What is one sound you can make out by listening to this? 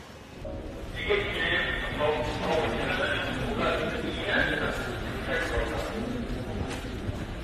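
A young man talks animatedly and close by.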